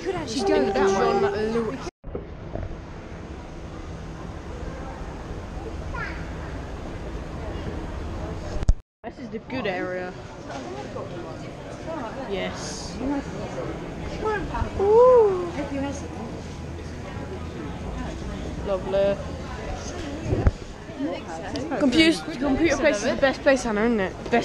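A teenage boy talks close by with animation.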